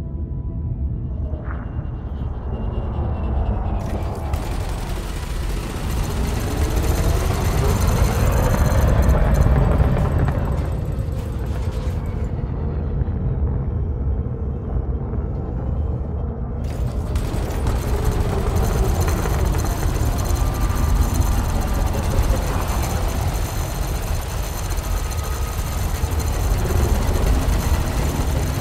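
A spaceship engine hums with a deep, steady rumble.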